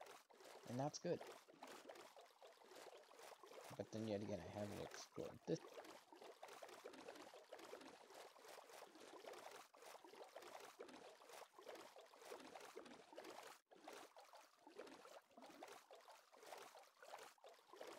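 Oars splash steadily through water as a boat is rowed.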